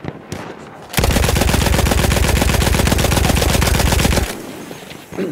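A machine gun fires a long, rapid burst.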